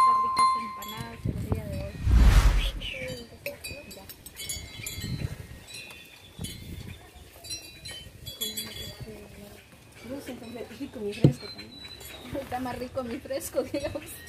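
Children talk and laugh together close by.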